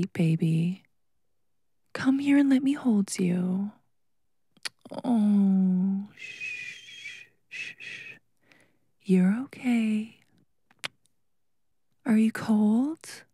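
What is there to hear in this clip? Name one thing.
A young woman speaks close to a microphone, in short bursts with pauses.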